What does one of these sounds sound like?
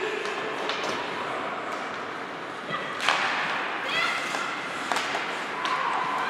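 A crowd murmurs and calls out in an echoing rink.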